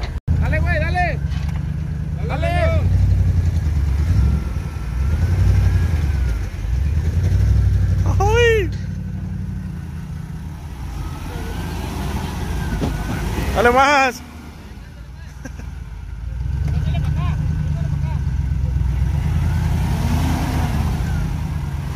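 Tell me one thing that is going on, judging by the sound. A pickup truck's engine revs hard as it strains in mud.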